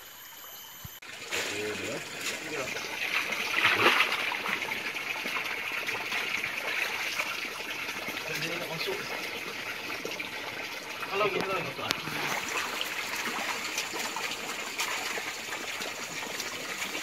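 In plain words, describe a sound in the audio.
Water splashes and sloshes as a net scoops through a shallow stream.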